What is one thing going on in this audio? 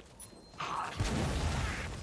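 A heavy blow strikes with a thud.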